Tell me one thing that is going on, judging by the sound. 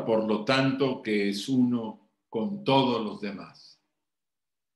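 An elderly man speaks calmly through an online call microphone.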